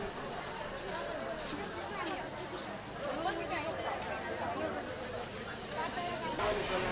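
A crowd of men and women talks and murmurs nearby outdoors.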